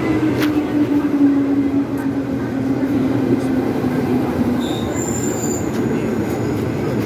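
A train rumbles past with a steady hum that slowly falls in pitch.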